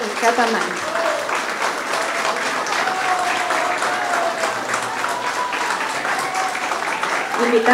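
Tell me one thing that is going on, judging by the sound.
A woman speaks warmly into a microphone, heard through loudspeakers in an echoing room.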